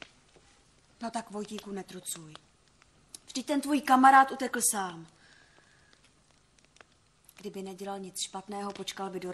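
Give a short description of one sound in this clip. A woman speaks nearby with animation.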